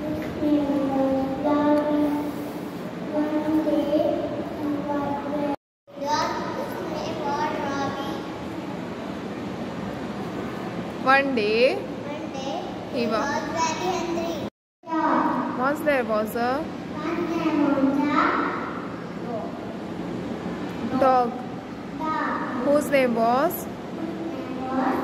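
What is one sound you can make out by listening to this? A young girl speaks clearly and with expression into a microphone, heard through a loudspeaker.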